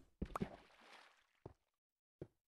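Water splashes and gurgles.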